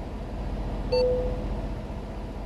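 A short electronic chime sounds once.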